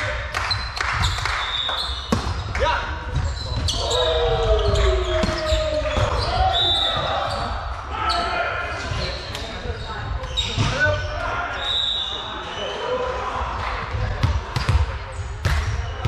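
Young players call out and shout to each other.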